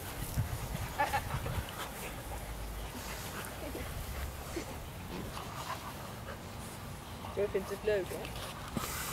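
Puppies yelp and whine as they play.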